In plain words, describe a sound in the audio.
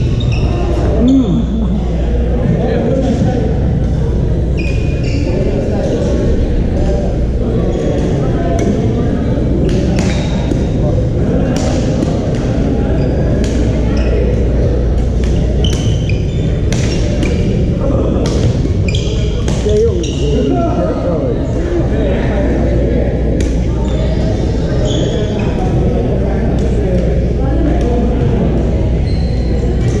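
Men's voices murmur and call out across a large hall.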